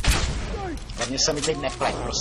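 A man shouts in alarm close by.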